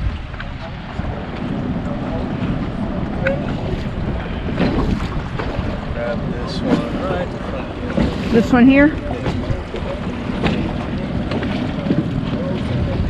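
Water laps and splashes against a boat.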